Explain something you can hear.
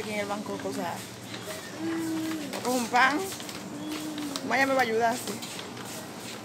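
A young woman talks expressively close to the microphone.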